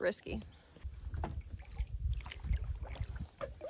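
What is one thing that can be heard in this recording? A paddle splashes softly in water.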